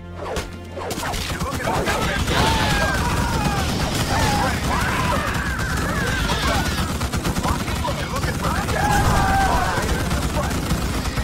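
Rapid gunfire and battle noise rattle steadily.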